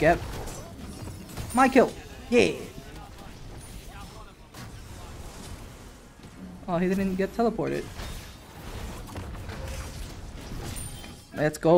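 Magic blasts and weapon strikes crackle and thud in a fight.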